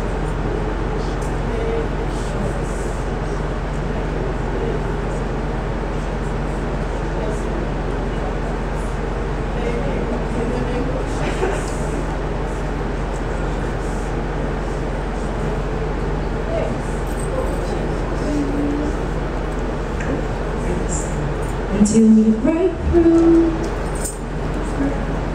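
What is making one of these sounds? A woman speaks through a loudspeaker in a large room.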